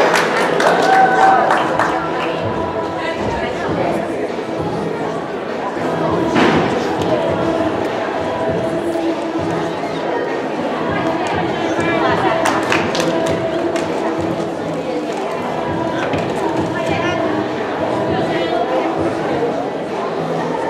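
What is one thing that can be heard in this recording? Children and young women talk and call out nearby.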